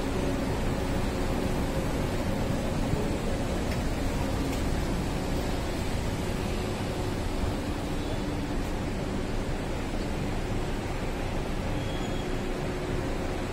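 Traffic rumbles steadily on a city street.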